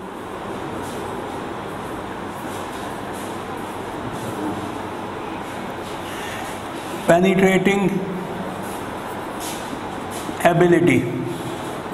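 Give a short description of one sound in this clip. A marker squeaks faintly across a whiteboard.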